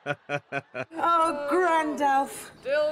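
A young man speaks playfully.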